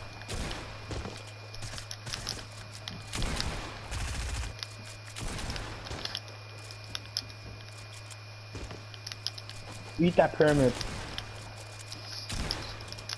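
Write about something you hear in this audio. Game building pieces snap into place with quick clicks.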